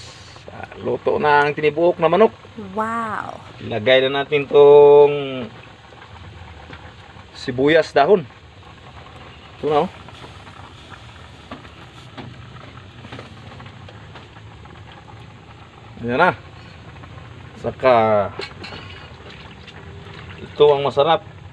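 Water simmers in a pot.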